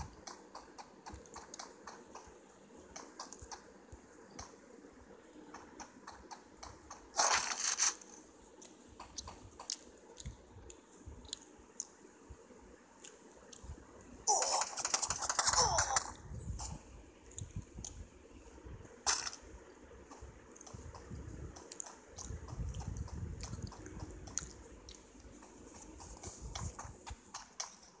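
Quick footsteps run across hard ground.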